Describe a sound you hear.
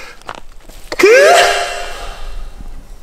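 A man lets out a loud, satisfied exclamation close by.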